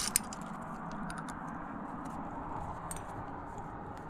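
Metal climbing gear clinks against rock.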